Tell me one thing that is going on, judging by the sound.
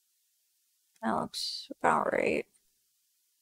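A young man speaks briefly and casually into a microphone.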